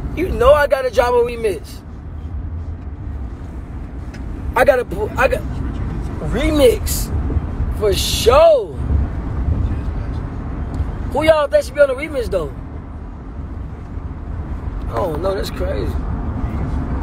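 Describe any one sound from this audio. A young man speaks close to a phone microphone, loud and animated, in short bursts.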